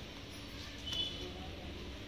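Cloth rustles softly as hands spread it out.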